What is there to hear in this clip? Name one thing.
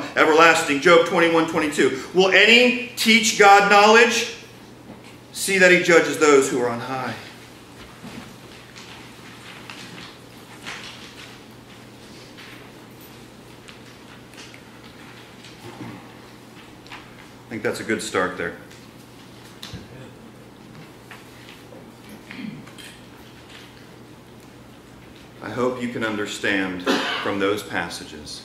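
A man speaks calmly through a microphone in a hall with a slight echo, pausing between phrases.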